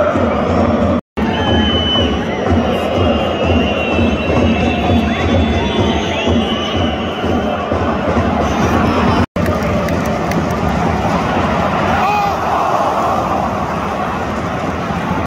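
A large stadium crowd sings and chants loudly outdoors.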